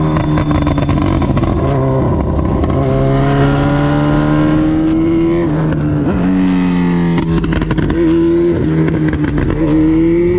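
A motorcycle engine revs loudly, rising and falling in pitch as the rider shifts gears.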